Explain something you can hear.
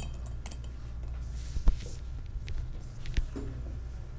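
A pen scratches and taps on paper close by.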